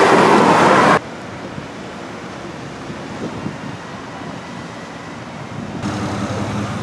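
A small waterfall splashes steadily.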